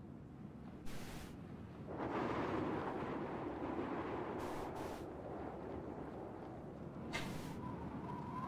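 Footsteps crunch on snow as a figure runs.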